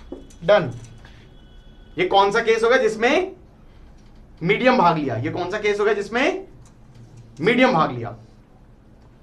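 A man speaks with animation through a close microphone, in short bursts.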